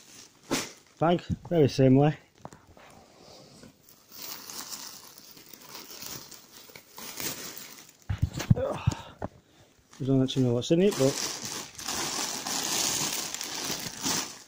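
Plastic bags rustle and crinkle as they are handled.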